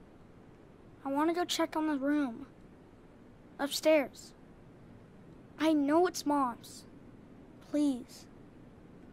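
A young boy speaks softly in short, halting bursts.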